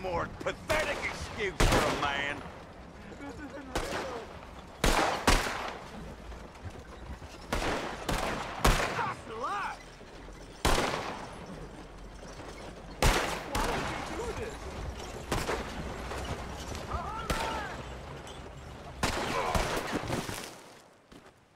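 Gunshots crack repeatedly, close and loud.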